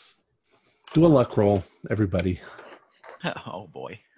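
A man speaks in a deeper voice over an online call.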